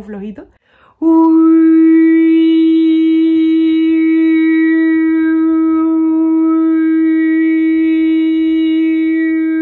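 A young woman sings one long, steady, held note.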